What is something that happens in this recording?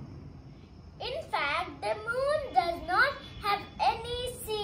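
A young boy speaks close by, with a high, lively voice.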